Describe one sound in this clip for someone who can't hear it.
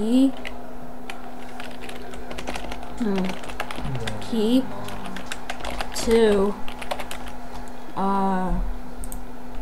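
An elderly woman speaks calmly close to a microphone.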